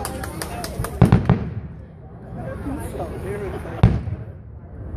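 Fireworks boom loudly in the distance outdoors.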